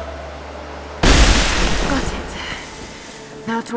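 Ice and rubble crash down loudly.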